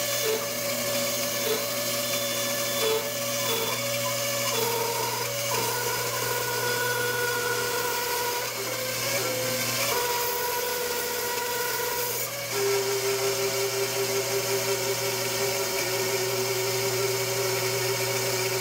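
A band saw blade cuts through wood with a rasping whine.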